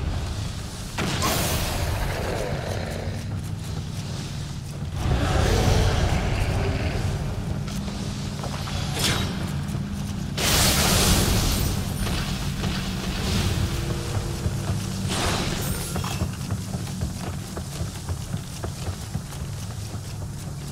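Fire bursts crackle and roar in quick blasts.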